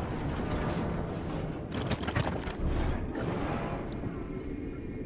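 A heavy stone mechanism rumbles and grinds open.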